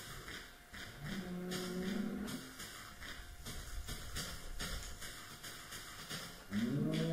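Footsteps crunch on grass at a steady walking pace.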